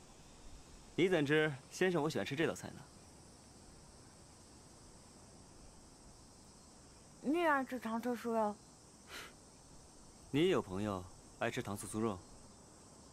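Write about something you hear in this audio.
A young man speaks calmly and pleasantly.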